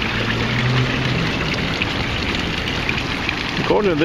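Water trickles into a fountain pool.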